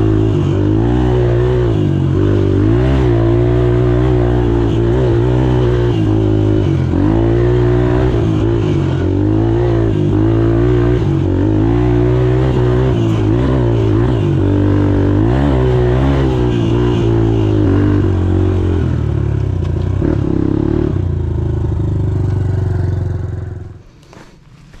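A dirt bike engine revs loudly up and down close by.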